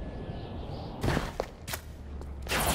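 An electric burst crackles loudly.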